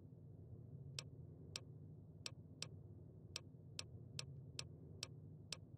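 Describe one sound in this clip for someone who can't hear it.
Short soft clicks tick one after another at an uneven pace.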